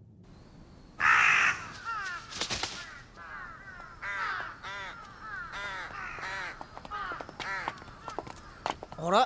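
Crows caw loudly and repeatedly.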